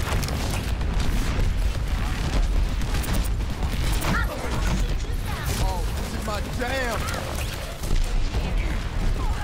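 Blasts boom and crackle nearby.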